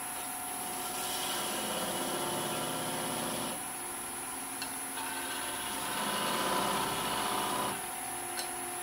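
A chisel scrapes against spinning wood on a lathe, rising and falling in bursts.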